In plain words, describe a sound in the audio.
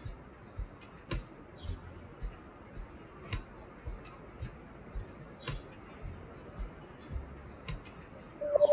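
Buttons click on a handheld game console.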